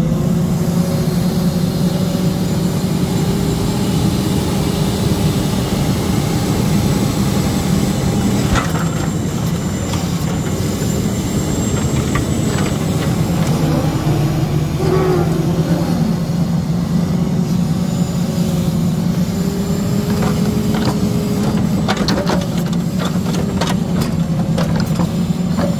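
Hydraulics whine as a crane arm swings.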